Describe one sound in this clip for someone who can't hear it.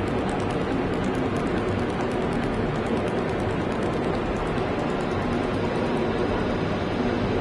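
A spacecraft engine hums steadily.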